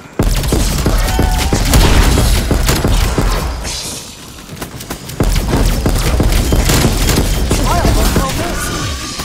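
Zombies growl and snarl.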